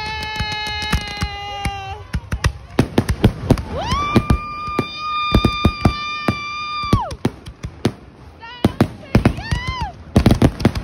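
Fireworks whistle shrilly as they shoot upward.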